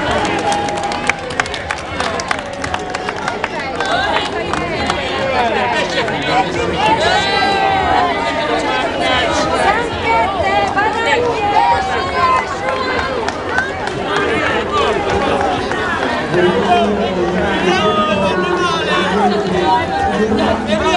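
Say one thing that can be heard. A large crowd of men, women and children chatters loudly outdoors.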